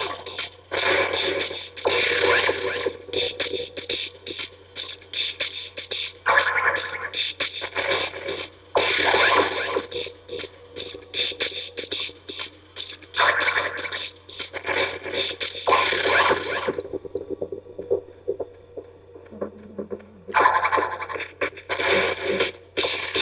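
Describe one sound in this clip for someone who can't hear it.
Video game music and sound effects play from a television speaker.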